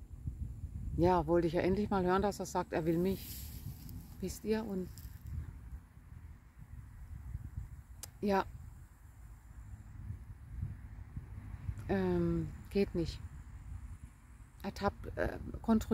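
A woman speaks calmly and warmly close to a microphone.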